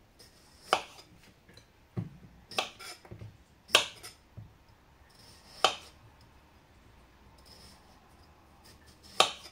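A knife chops through a cucumber onto a wooden board in sharp, uneven knocks.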